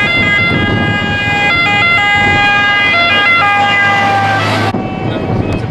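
A fire engine's two-tone siren wails close by.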